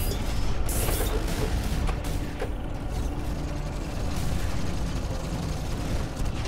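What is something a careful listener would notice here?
A heavy machine engine rumbles low and steady.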